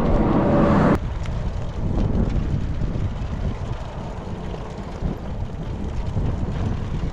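Bicycle tyres roll over rough asphalt.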